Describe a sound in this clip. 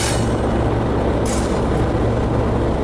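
Train wheels clack over a rail switch.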